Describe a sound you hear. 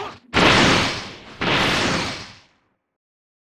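A whooshing rush of energy sweeps past.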